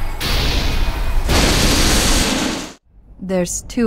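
An energy field crackles and roars loudly.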